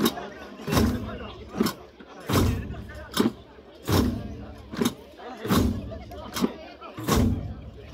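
A group of men sing and chant together.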